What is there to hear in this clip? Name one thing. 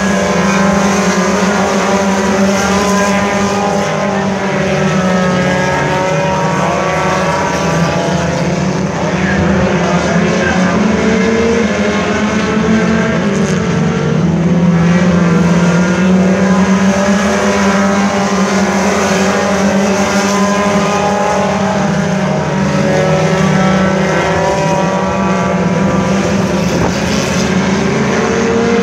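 Race car engines roar loudly and steadily, outdoors.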